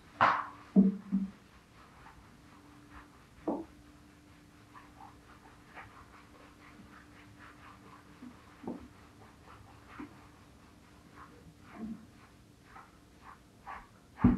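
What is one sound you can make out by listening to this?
Fingers rub and scrub lathered hair with soft, wet squelching.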